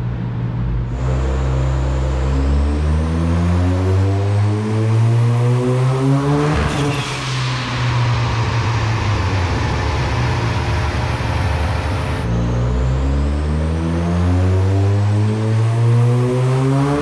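A car engine revs loudly, rising in pitch again and again as it shifts through gears.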